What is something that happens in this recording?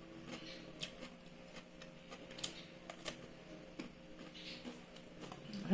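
A woman chews food noisily close by.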